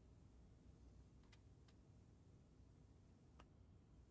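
Snooker balls click together softly.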